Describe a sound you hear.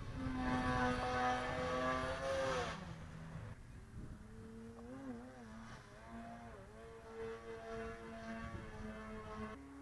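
An engine drones overhead with a steady hum that shifts in pitch now and then.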